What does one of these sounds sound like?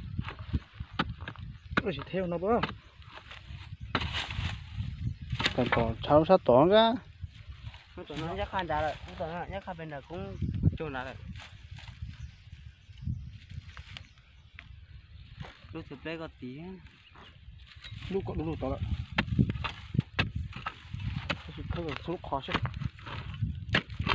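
A wooden stick jabs and scrapes into dry soil.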